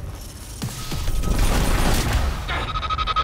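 A low, rumbling blast of energy whooshes and booms.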